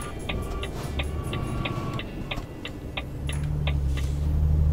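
A turn signal ticks rapidly and evenly.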